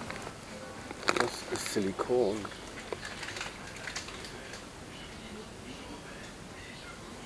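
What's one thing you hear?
A metal can rattles against a shelf as a hand takes it.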